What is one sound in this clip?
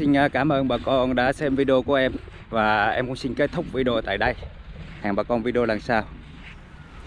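A man talks calmly and close up into a microphone.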